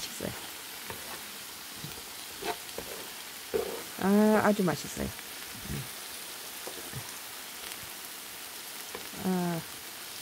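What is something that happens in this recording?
Vegetables sizzle softly in a hot pan.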